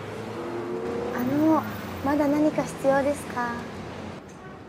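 A young woman asks a question politely, close by.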